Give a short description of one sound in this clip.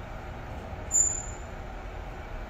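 An elevator chime beeps once.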